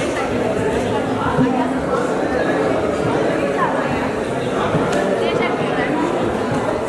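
A crowd of men, women and children chatters in a large echoing hall.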